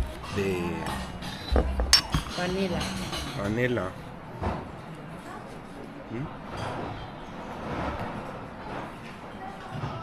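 Coffee pours from a metal pot into a cup.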